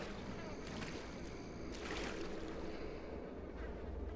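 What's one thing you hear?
A body is dragged across wet ground.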